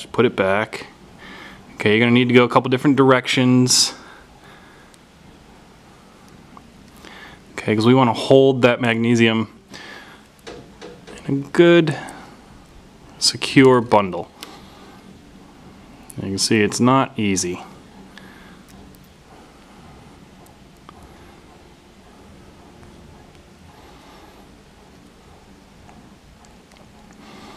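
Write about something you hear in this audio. Small metal parts click softly between fingers.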